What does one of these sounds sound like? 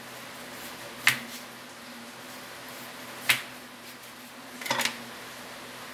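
A knife cuts through pork belly and taps on a plastic cutting board.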